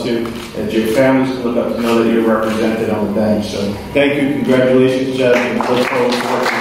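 A middle-aged man speaks through a microphone in a large echoing hall.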